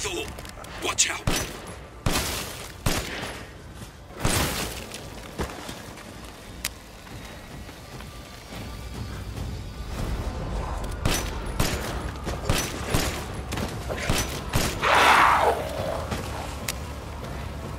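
Rifle shots ring out sharply, one after another.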